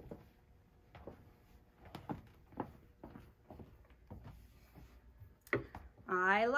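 Fabric rustles and taps on a pressing board.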